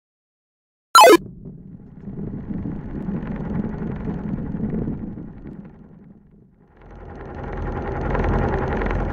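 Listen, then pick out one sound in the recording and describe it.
A ball rolls along with a low rumble.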